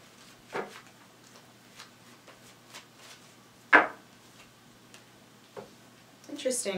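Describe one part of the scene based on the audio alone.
Cards shuffle and tap on a table.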